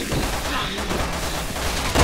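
A heavy body thuds onto the floor.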